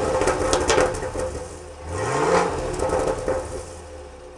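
Exhaust pops and crackles from a car's tailpipe.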